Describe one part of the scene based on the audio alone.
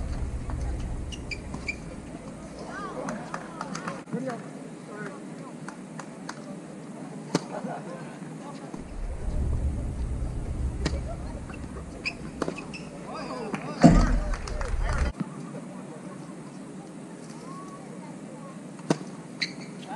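Tennis balls are struck with sharp pops of rackets.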